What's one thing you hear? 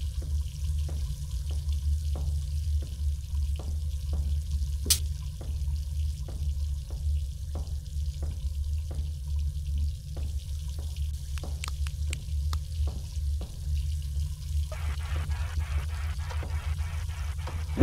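Footsteps thud at an even pace across a floor.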